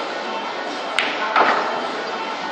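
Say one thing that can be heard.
Pool balls clack sharply together after a cue strike.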